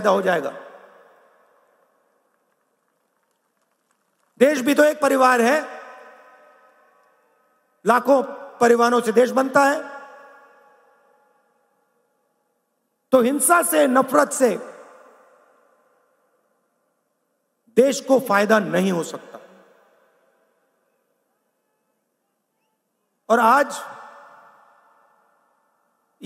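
A man speaks forcefully into a microphone in short bursts, his voice echoing over loudspeakers in a large open space.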